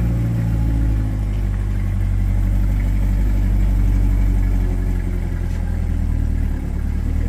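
A sports car engine idles with a deep, steady rumble.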